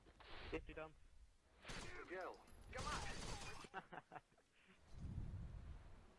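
A rifle fires short bursts of gunshots.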